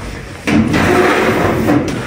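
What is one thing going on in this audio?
An oven door creaks open.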